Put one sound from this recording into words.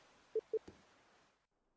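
Two short electronic beeps sound in quick succession.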